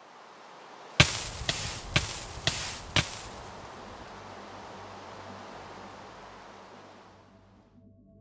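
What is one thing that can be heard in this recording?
TNT explosions boom in quick succession in a block-building video game.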